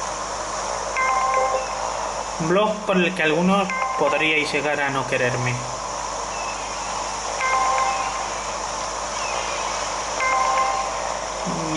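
A short bright chime rings as a plane flies through a hoop in a video game.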